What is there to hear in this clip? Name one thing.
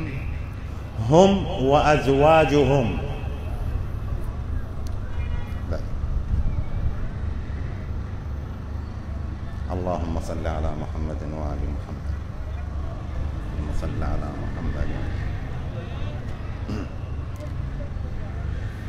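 An elderly man chants and speaks through a microphone and loudspeakers in an echoing hall.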